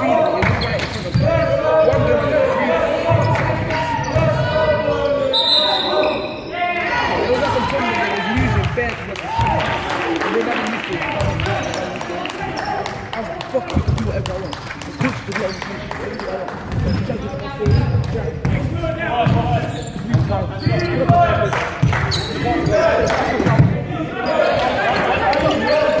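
A basketball bounces with dull thuds on a wooden floor.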